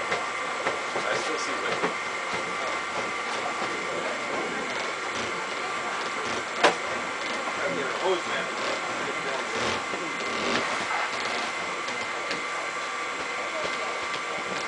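Men talk casually at a distance.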